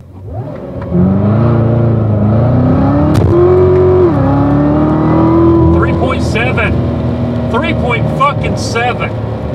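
A car engine roars and rises in pitch as it accelerates, dropping briefly at a gear change.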